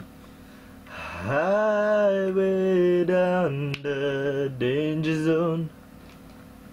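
A young man sings loudly, close to the microphone.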